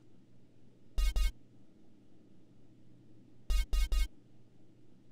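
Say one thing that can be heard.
Short electronic beeps sound from a game menu.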